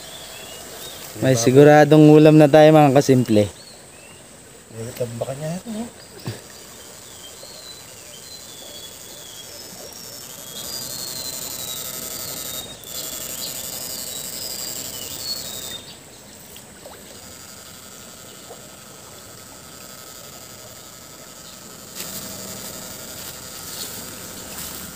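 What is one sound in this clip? Water swishes as a man wades through a shallow stream.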